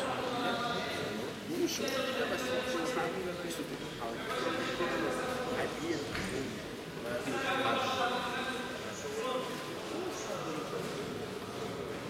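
A man speaks loudly nearby over the crowd.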